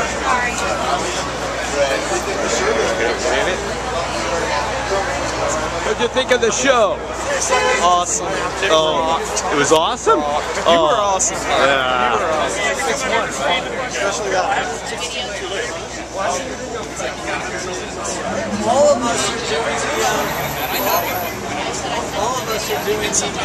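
A crowd chatters loudly and close by.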